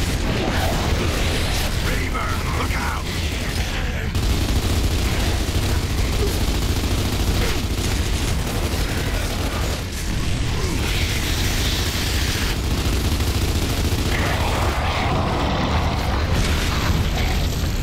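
An explosion bursts with a deep boom.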